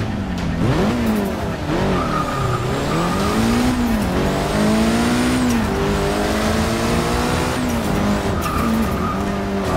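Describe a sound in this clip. A car engine revs high and climbs steadily as the car pulls away.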